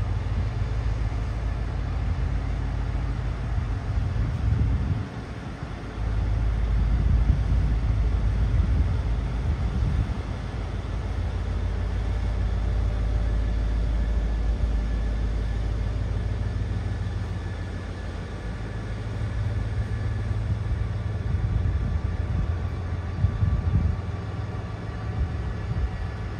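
A train rolls slowly past with a low rumble.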